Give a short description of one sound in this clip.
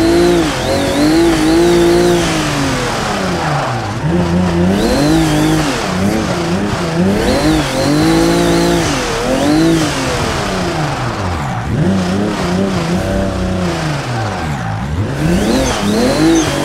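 Tyres squeal through turns.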